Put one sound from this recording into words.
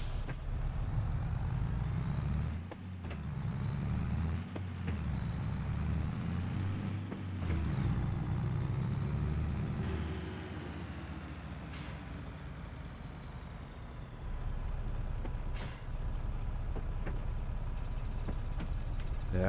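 A tractor engine rumbles steadily, its pitch rising and falling.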